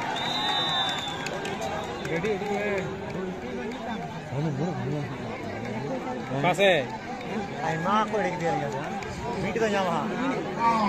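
A large outdoor crowd of spectators chatters and shouts.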